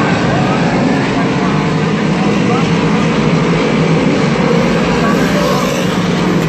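Race car engines roar loudly around a dirt track, heard outdoors.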